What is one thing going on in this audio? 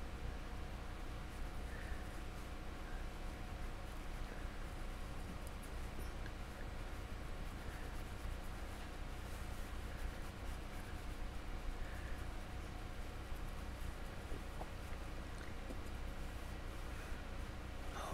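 A paintbrush dabs and scrapes softly on a sculpted surface.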